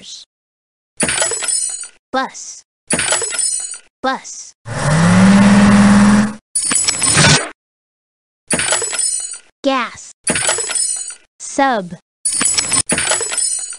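Cheerful cartoon sound effects chime and pop.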